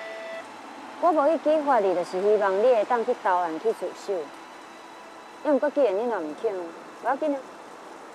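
A young woman speaks calmly and firmly close by.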